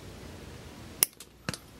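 Wire cutters snip a thin wire with a sharp click.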